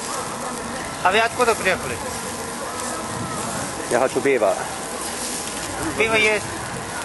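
A man speaks briefly close by, in short bursts.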